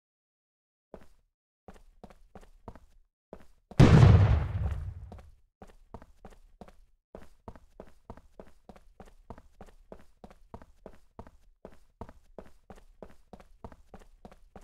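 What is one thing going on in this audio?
Footsteps patter quickly and steadily.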